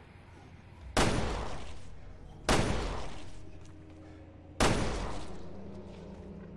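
A pistol fires three loud shots that echo in a large space.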